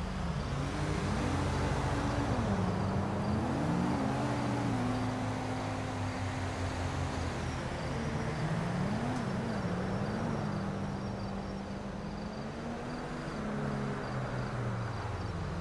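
Car engines hum and rise and fall in pitch as cars drive past on a road.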